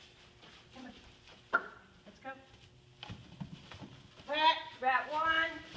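Straw rustles underfoot as a dog moves about.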